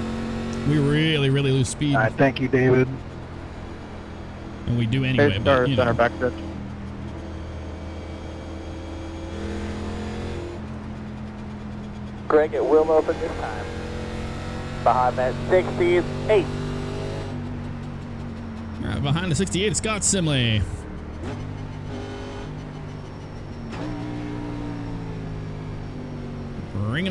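A race car engine drones steadily at high speed.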